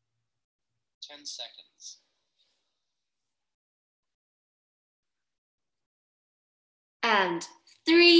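A young woman speaks briefly and casually into a nearby microphone.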